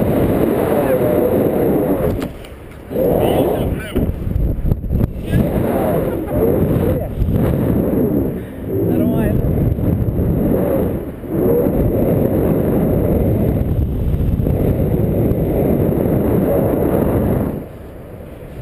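Wind roars loudly past a microphone.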